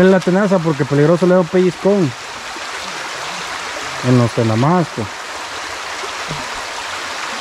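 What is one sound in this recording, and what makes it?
A shallow stream rushes and burbles over rocks.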